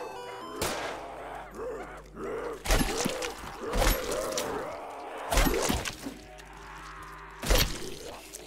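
Gunshots bang out in short, loud bursts.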